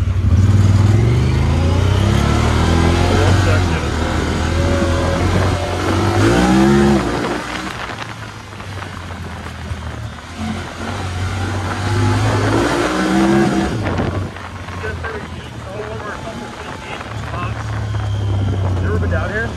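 A side-by-side engine revs and roars, rising and falling in pitch.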